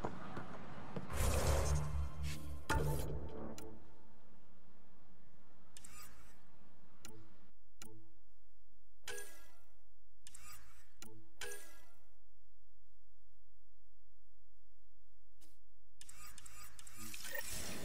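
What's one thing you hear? Menu sounds click and chime in short bursts.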